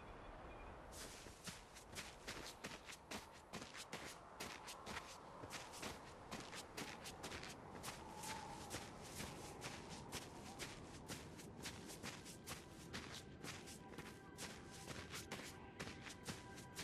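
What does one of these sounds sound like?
Footsteps patter quickly while running.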